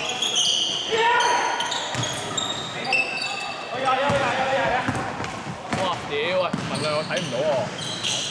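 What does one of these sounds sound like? Young men shout to each other across the court.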